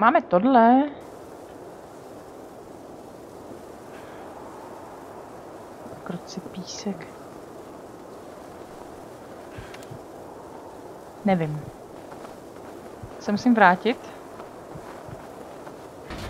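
A flare burns with a steady hiss.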